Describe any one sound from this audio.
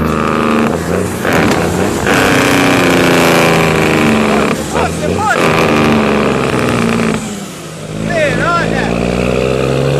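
A young man talks loudly close by over the engine.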